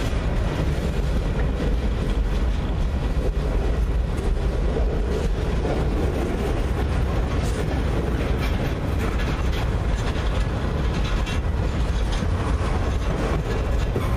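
Steel wheels clack and squeal on the rails.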